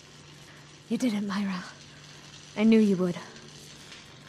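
A young woman speaks quietly and tensely.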